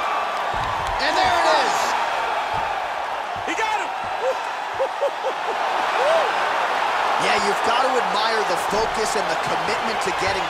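Spectators whistle loudly.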